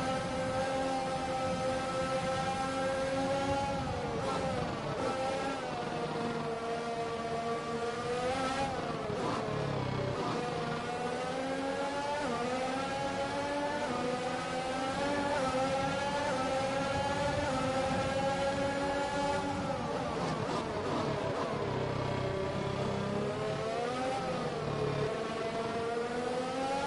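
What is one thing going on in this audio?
A racing car engine screams at high revs, rising and dropping in pitch as the car shifts gears and brakes.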